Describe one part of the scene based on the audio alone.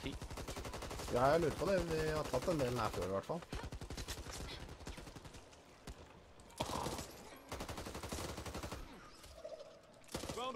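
A submachine gun fires rapid bursts close by.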